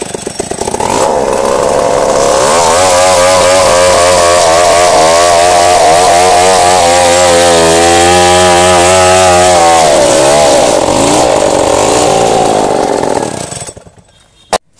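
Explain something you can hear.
A gasoline chainsaw cuts at full throttle through a coconut trunk.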